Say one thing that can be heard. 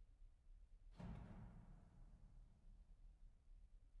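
A piano chord rings out and slowly fades.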